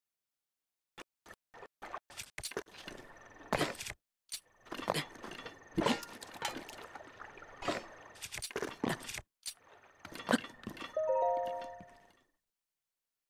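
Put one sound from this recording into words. Short game menu clicks and chimes sound repeatedly.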